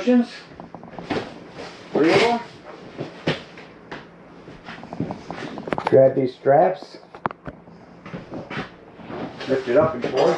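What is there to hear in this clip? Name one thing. A cushion thumps as a man lifts and sets it down.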